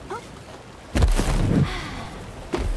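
A springy bounce booms out with a whoosh.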